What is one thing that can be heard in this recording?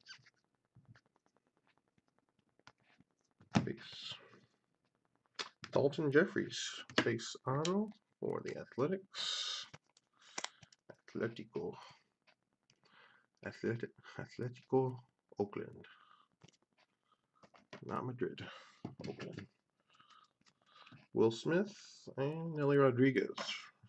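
Trading cards flick and slide against each other in the hands.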